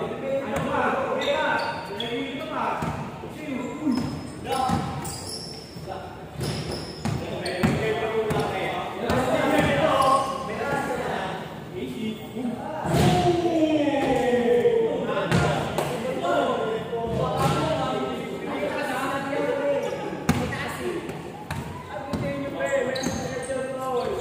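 Young men call out and talk to each other while playing.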